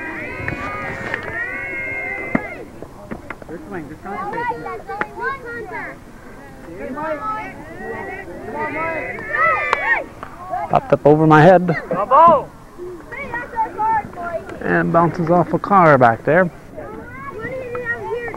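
Children shout and cheer excitedly nearby.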